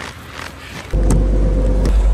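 A door latch clicks as a handle is pulled.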